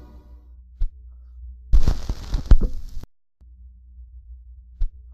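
A turntable hums with a low steady rumble.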